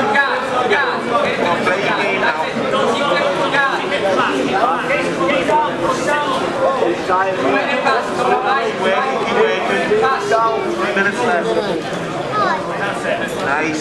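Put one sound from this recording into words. A crowd of men and women chatter and call out in a large echoing hall.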